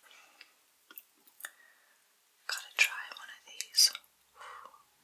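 Candy crinkles and taps as fingers pick it up.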